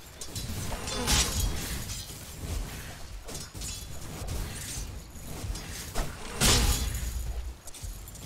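Magic spells burst with loud whooshes.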